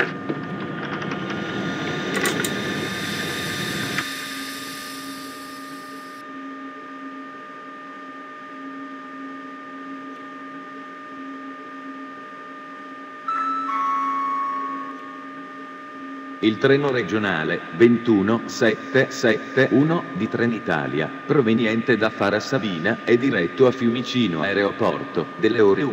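An electric train's cab hums steadily.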